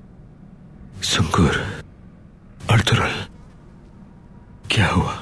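A man speaks weakly and hoarsely nearby.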